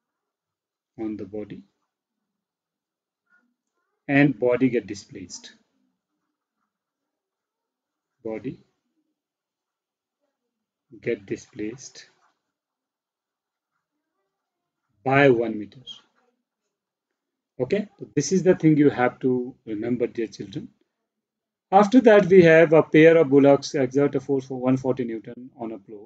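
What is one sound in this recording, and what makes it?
A man speaks calmly into a close microphone, explaining in short bursts with pauses.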